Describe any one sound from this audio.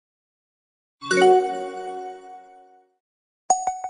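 A bright game chime rings out and fades.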